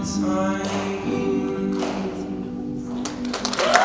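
A teenage boy sings into a microphone.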